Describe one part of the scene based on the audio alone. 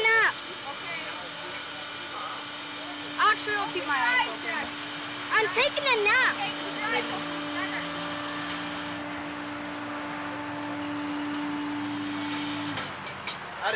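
A steady electric hum drones from a machine.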